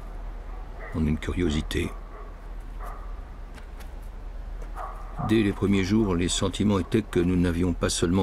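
An elderly man speaks calmly and close by.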